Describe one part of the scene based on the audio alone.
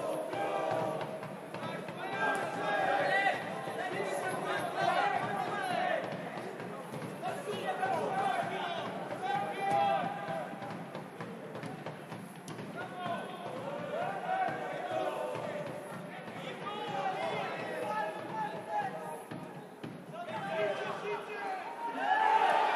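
A crowd of spectators chants in an open-air stadium.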